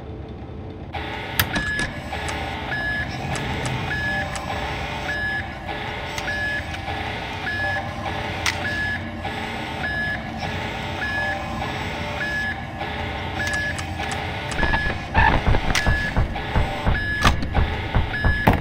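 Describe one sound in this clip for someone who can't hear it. An electronic beep repeats at a steady, even pace.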